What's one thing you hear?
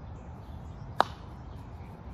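A mallet strikes a croquet ball with a sharp knock.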